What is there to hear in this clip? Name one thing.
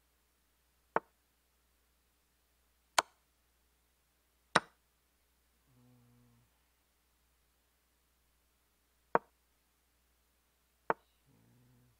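Short sharp clicks sound as chess pieces are moved, now and then.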